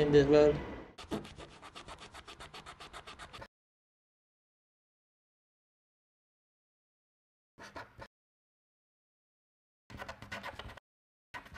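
A felt marker squeaks and scratches on card.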